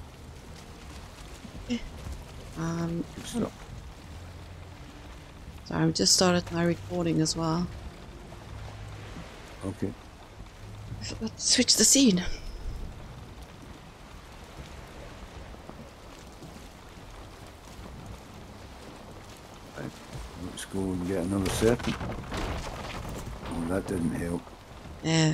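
Water laps gently against a wooden boat's hull.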